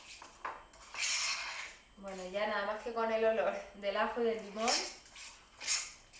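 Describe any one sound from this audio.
A fork scrapes and clinks against a bowl.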